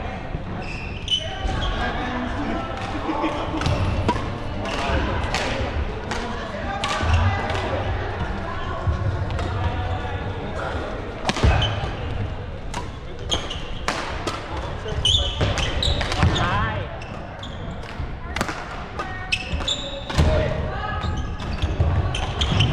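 Men's voices chatter and call out across a large echoing hall.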